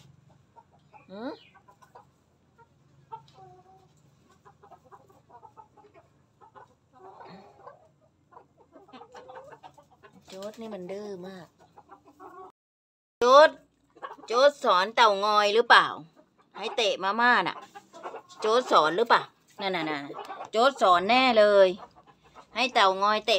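Chickens cluck softly nearby.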